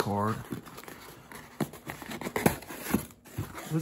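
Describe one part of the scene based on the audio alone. Cardboard scrapes and taps as a box is handled.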